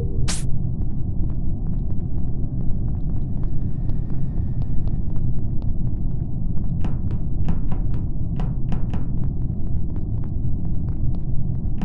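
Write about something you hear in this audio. Soft footsteps patter across a hard floor.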